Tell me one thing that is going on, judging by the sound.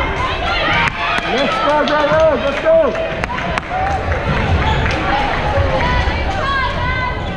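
Young women players shout and cheer together.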